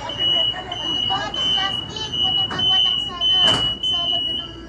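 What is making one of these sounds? Sliding train doors close with a thud.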